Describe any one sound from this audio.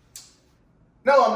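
A young man speaks loudly close by.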